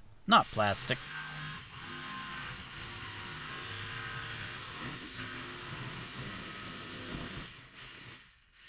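A jigsaw cuts steadily through a plastic sheet with a buzzing rattle.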